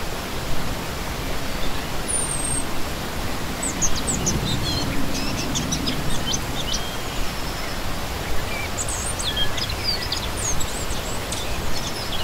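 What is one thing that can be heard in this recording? A shallow stream rushes and gurgles steadily over rocks close by.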